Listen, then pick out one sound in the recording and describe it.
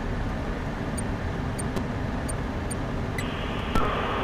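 Short electronic beeps sound as menu buttons are clicked.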